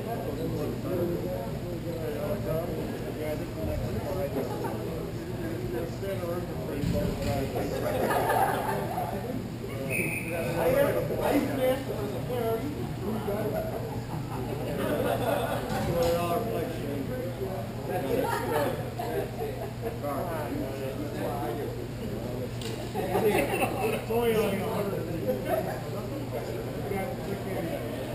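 Young players shout and call out to each other at a distance in an echoing hall.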